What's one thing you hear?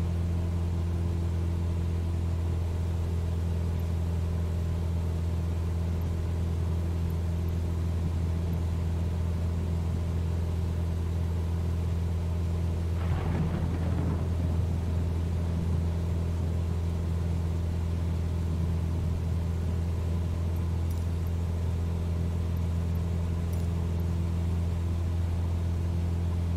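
A small propeller plane's engine drones steadily from inside the cabin.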